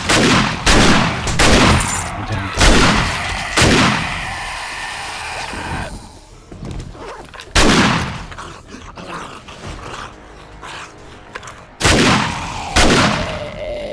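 Shotgun blasts boom loudly several times.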